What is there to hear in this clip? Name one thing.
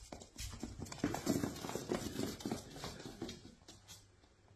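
A small dog's claws skitter across a hard floor.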